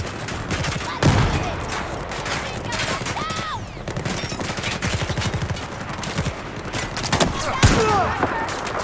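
A heavy explosion booms nearby.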